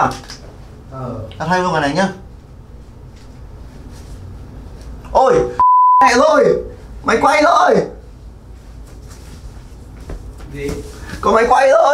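Clothes rustle as a young man undresses.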